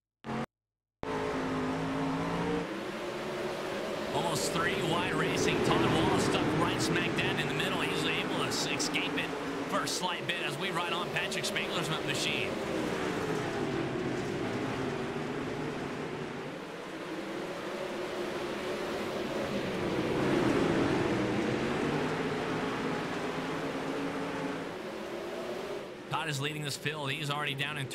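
Racing car engines roar and whine.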